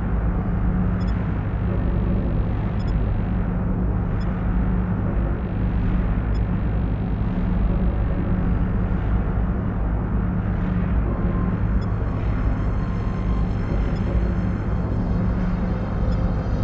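Soft electronic blips sound as menu buttons are tapped.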